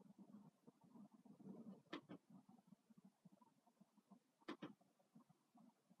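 Fingers tap and click on a laptop keyboard and touchpad.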